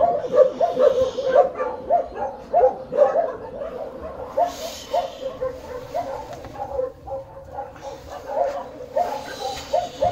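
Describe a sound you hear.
A small puppy squeaks repeatedly in short high whimpers, close by.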